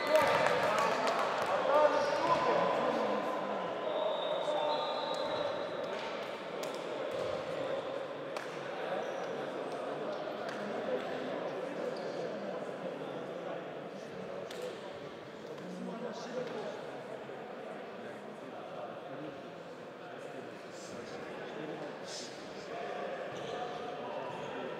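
A crowd murmurs and shouts in a large echoing hall.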